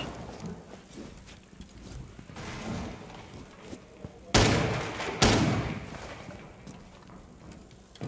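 A smoke grenade hisses steadily.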